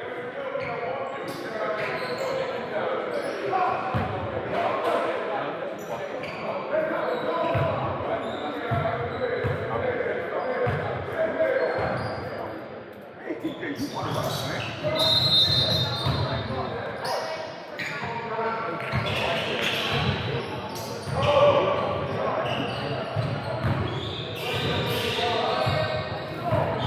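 Spectators chat in a large echoing gym.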